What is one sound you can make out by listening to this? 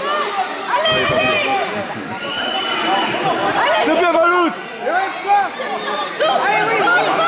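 Young children thud onto a padded mat while wrestling.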